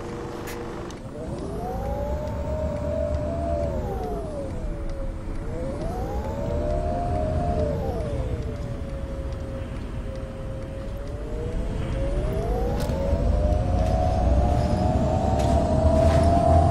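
A bus engine hums and rises and falls in pitch as the bus speeds up and slows down.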